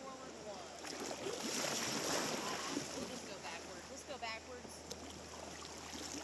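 Paddles splash in shallow river water.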